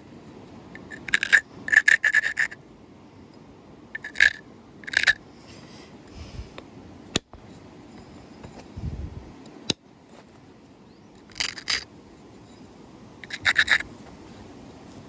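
Stone flakes scrape and crackle as an antler tool presses against a flint edge.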